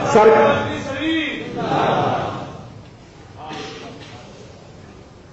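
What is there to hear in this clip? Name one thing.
A man preaches with animation into a microphone.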